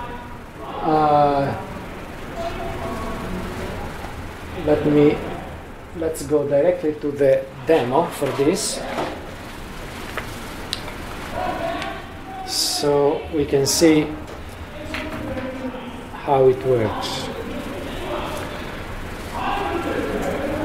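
A man speaks through a microphone in a large room, explaining in bursts.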